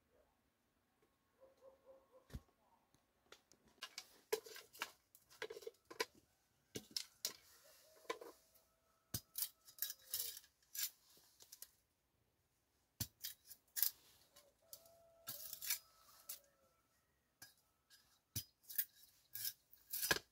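A knife chops and scrapes sharply against wood in quick strokes.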